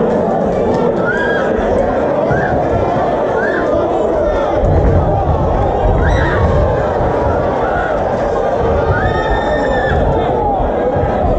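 Men in the crowd yell out from close by.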